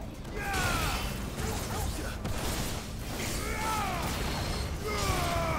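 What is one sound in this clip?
Sword slashes and magic blasts crackle in a fast fight.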